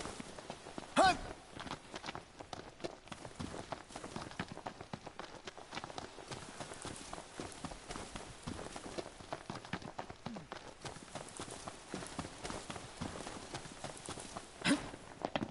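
Footsteps run quickly through grass and brush.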